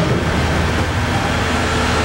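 A cardboard produce box is set down on a stack.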